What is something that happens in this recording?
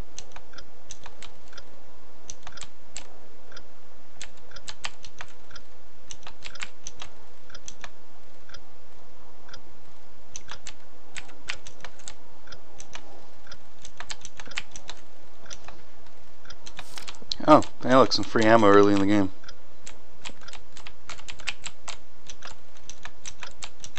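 Short ticking blips sound.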